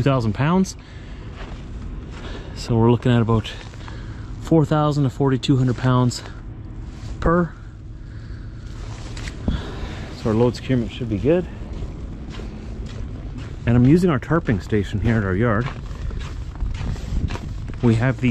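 A man talks calmly and close to the microphone.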